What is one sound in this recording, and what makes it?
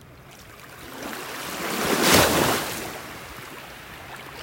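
Shallow water sloshes and splashes close by.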